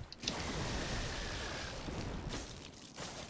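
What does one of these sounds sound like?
A blast of fire roars.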